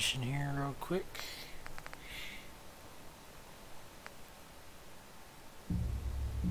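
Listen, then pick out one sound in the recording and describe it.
Short electronic menu clicks sound as selections change.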